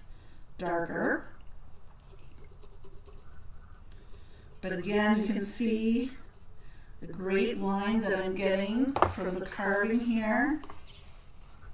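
A woman talks with animation close to a microphone.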